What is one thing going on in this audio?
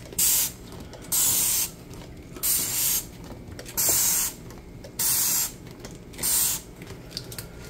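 A spray bottle sprays in short hissing bursts.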